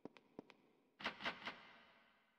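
A locked door handle rattles.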